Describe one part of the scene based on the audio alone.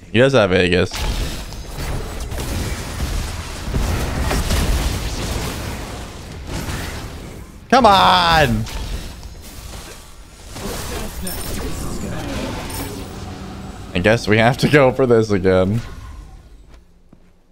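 Video game effects whoosh and clash.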